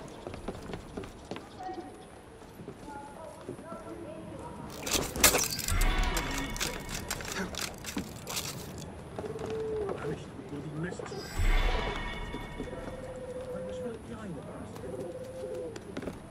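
Quick footsteps patter and scrape across roof tiles.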